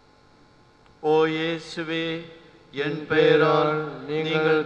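An elderly man chants slowly into a microphone.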